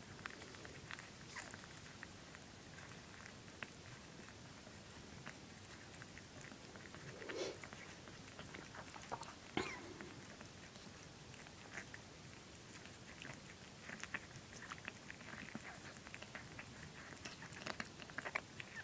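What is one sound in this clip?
A cat licks wetly and rhythmically, up close.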